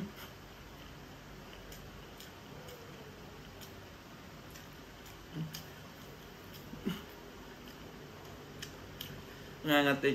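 A man eats with his fingers, with soft smacking sounds.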